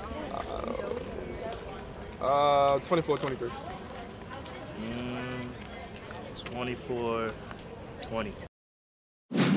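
A young man speaks casually close by, outdoors.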